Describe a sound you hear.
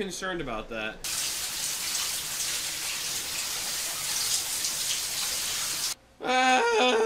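A shower runs with a steady hiss of water.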